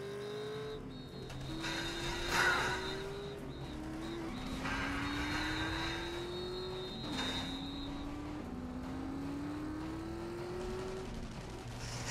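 A racing car engine revs and climbs in pitch, shifting gears again and again.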